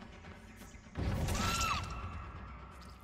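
A heavy blade swings through the air and strikes.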